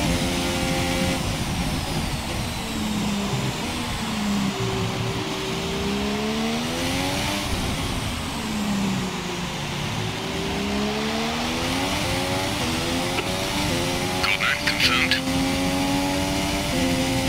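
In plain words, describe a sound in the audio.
A racing car engine whines, its pitch dropping as it slows for corners and climbing as it speeds up through the gears.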